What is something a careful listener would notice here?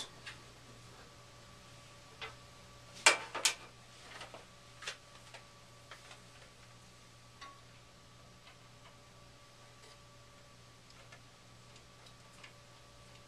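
Tools click and tap against metal parts.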